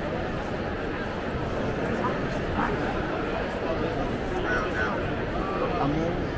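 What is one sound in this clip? A crowd chatters loudly in a large echoing hall.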